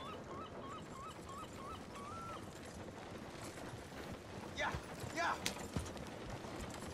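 A horse-drawn carriage rattles past close by.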